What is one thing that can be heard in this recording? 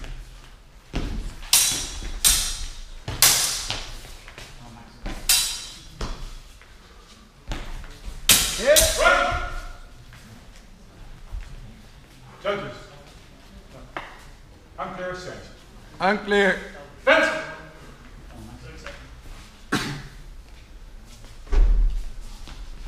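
Fencing blades clash and clatter sharply.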